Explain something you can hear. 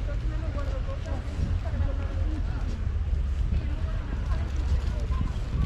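Wind rumbles steadily and gusts outdoors.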